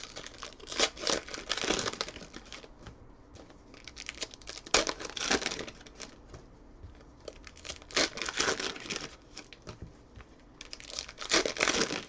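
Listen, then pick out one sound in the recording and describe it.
Foil wrappers crinkle and tear in short bursts, close by.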